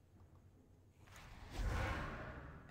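A magic spell whooshes in a swirling burst and fades.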